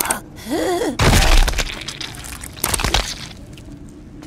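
A brutal stomp lands with a crushing thud.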